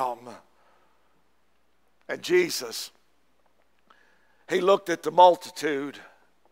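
An older man speaks through a microphone, pausing between phrases.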